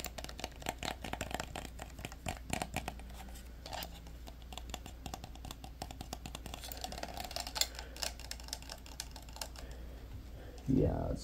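Plastic clicks and rattles as hands twist a small toy.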